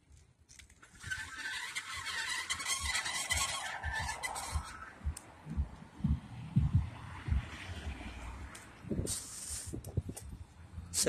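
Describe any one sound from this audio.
Bicycle tyres roll and crunch over rough pavement.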